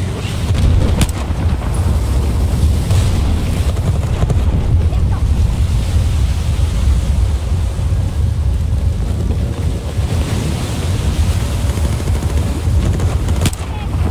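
Gunshots crack now and then.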